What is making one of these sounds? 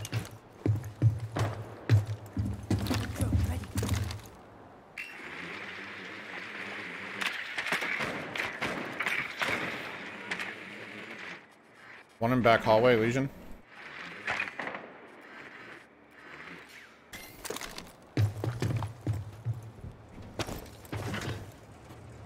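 Heavy footsteps thud on a metal roof.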